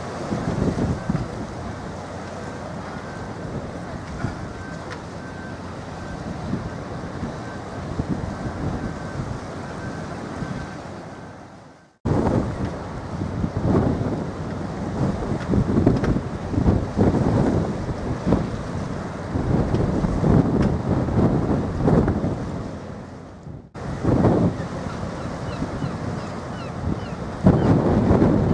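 Seagulls cry overhead.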